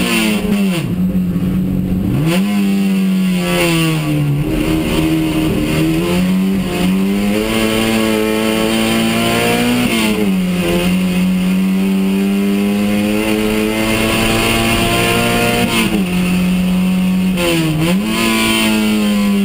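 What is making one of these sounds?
A race car engine roars loudly from inside the cabin, revving up and dropping with each gear change.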